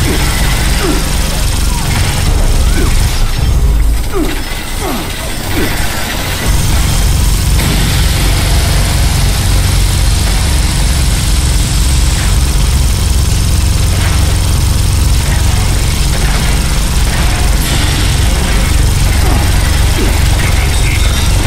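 A heavy gun fires rapid bursts with loud roaring blasts.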